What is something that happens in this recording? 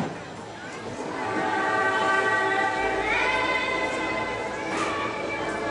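Music plays through loudspeakers outdoors.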